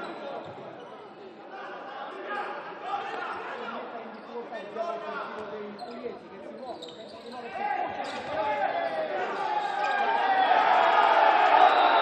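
A crowd shouts and cheers in a large echoing hall, growing louder.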